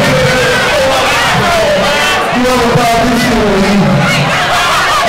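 Loud hip-hop music with a heavy beat plays through loudspeakers.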